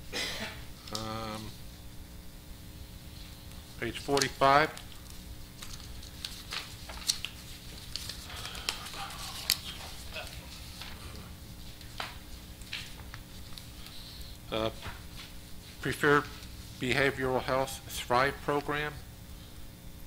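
A man speaks calmly through a microphone in short bursts.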